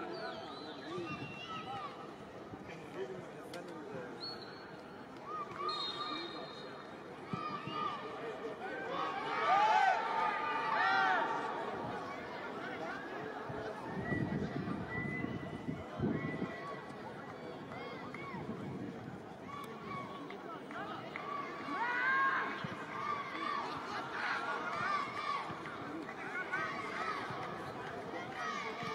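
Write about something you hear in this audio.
A large crowd murmurs and calls out in an open stadium.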